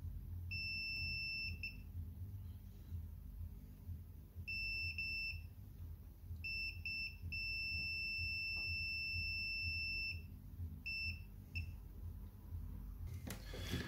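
A soldering iron sizzles faintly against a joint.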